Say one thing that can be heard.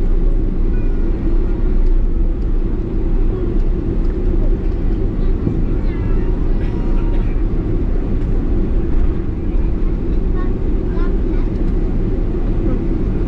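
Jet engines roar steadily from inside an airplane cabin.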